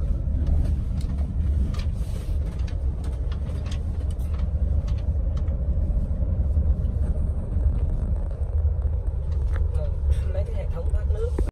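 A car engine rumbles steadily from inside the car as it drives.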